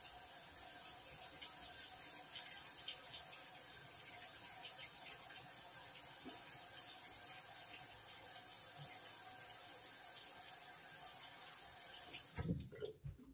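A top-load washing machine fills with water, with a steady hiss of spraying water.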